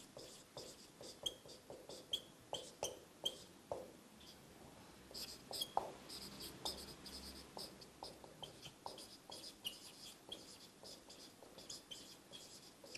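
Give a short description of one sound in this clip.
A marker squeaks and taps in quick strokes on a whiteboard.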